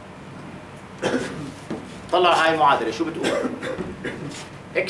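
A middle-aged man speaks calmly, as if lecturing.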